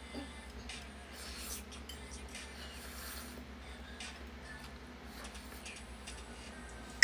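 A metal spoon clinks against a plate.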